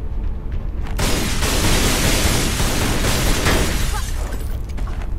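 Glass shatters and tinkles to the ground.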